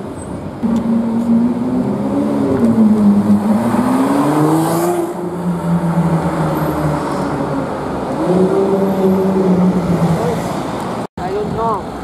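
A sports car engine revs loudly and roars as the car pulls away.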